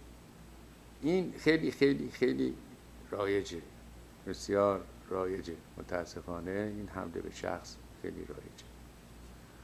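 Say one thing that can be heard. A middle-aged man speaks calmly and clearly into a microphone.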